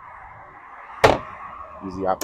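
A hatch lid thumps shut.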